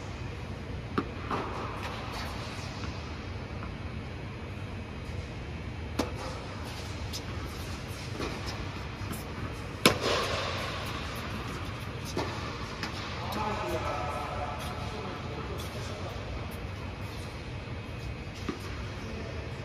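Tennis balls pop off rackets, echoing in a large hall.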